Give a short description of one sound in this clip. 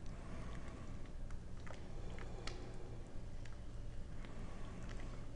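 A thick stew bubbles and simmers in a pot.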